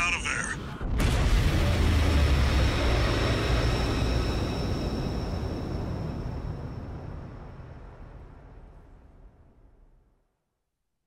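A large explosion booms and slowly rumbles away.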